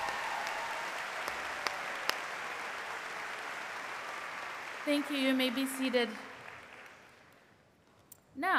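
A large crowd applauds in a big echoing hall, the clapping slowly fading.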